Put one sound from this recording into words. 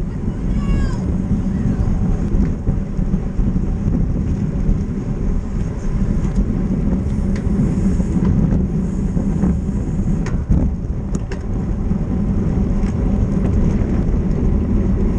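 Wind roars steadily over a microphone.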